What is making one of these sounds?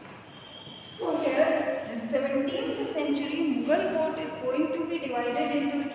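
A woman speaks clearly and calmly close by, as if explaining.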